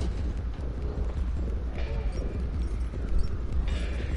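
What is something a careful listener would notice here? Small footsteps patter across a wooden floor.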